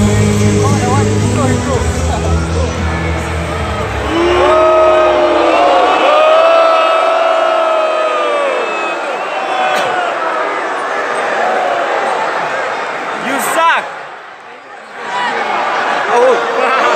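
A large crowd cheers and screams loudly in a huge echoing arena.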